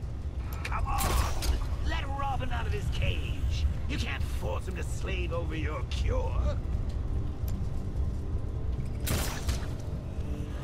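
A grappling line fires with a sharp whoosh.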